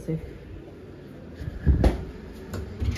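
A refrigerator door thuds shut.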